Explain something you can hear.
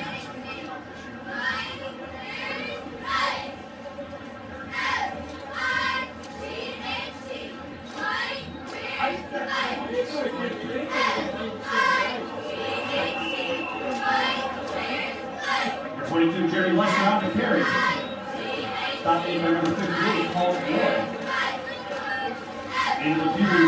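A crowd of people shouts and talks from a distance outdoors.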